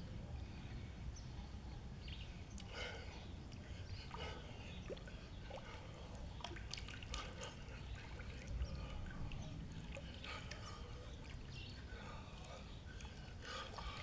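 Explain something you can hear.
Water splashes and laps as a man moves about in a pool.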